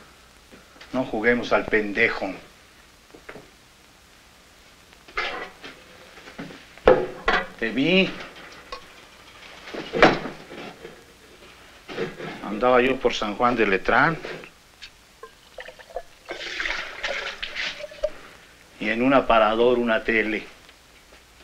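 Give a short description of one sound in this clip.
An elderly man speaks with animation close by, in short bursts with pauses.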